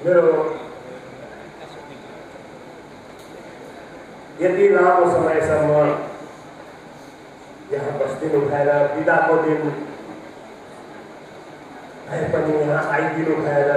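A middle-aged man recites slowly and expressively through a microphone, in phrases separated by pauses.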